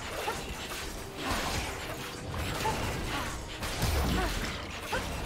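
Video game spell effects whoosh and crackle during a fight.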